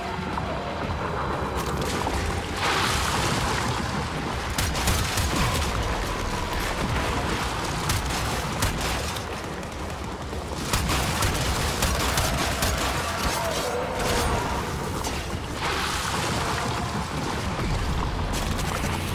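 Gunfire rattles rapidly in a video game.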